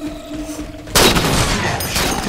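A sniper rifle fires a loud, booming shot.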